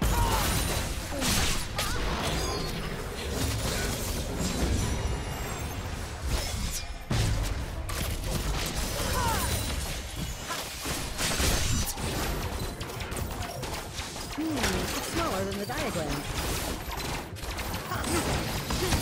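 Game spells and weapon hits crackle and clash in a fast battle.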